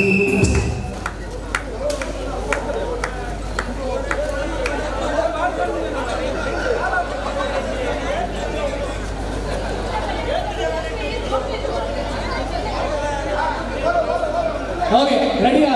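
A crowd of women and men chatters and calls out outdoors.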